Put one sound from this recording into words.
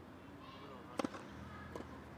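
A tennis ball bounces once on a hard court.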